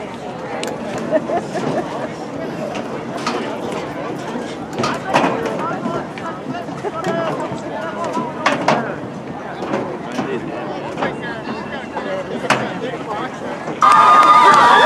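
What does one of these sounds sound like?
A crowd murmurs and calls out outdoors.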